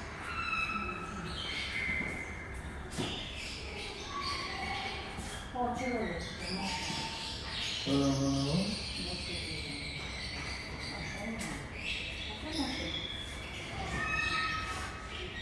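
Small parrots chirp and twitter close by.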